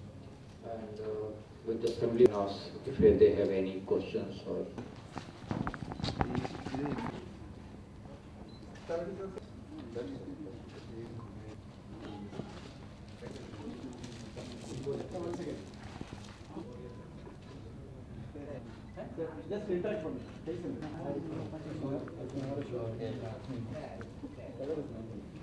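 A man speaks steadily through a microphone and loudspeaker in a large room.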